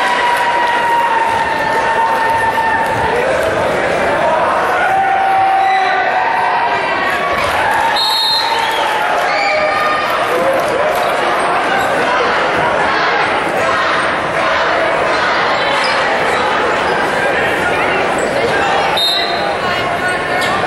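A large crowd chatters and calls out in a big echoing gym.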